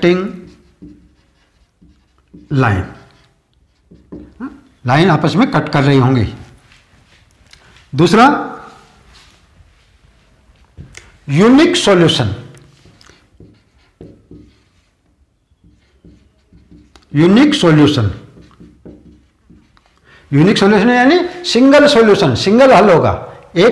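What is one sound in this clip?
A middle-aged man speaks clearly and with emphasis into a close microphone, in short bursts.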